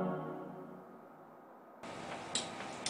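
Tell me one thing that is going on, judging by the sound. A synthesizer chord rings out and slowly fades.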